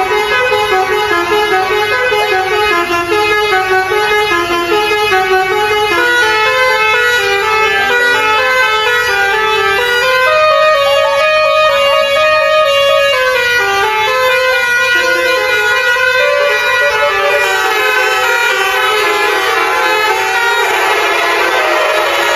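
A bus's musical horn plays loud, changing tunes.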